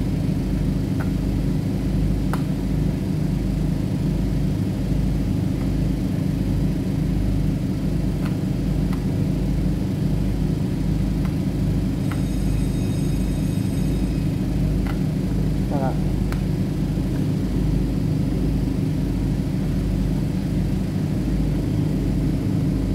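A ship's engine drones steadily with a low, even throb.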